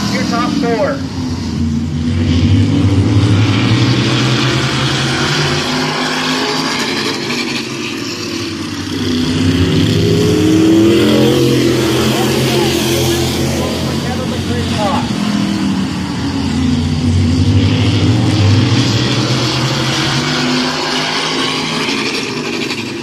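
Race car engines roar loudly as the cars circle the track, rising and falling as they pass close by.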